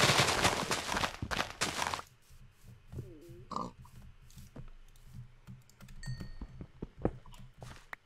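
Blocks crack and crumble as they are broken.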